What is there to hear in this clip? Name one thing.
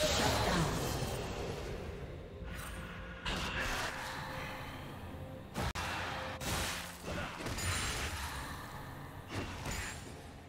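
Game combat sound effects of spells and hits burst and crackle.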